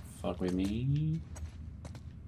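A young man speaks briefly and with animation, close to a microphone.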